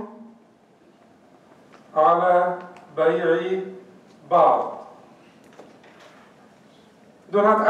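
A man speaks in short, drawn-out phrases nearby.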